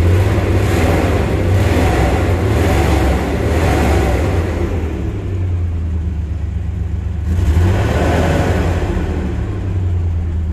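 An engine revs up loudly and falls back.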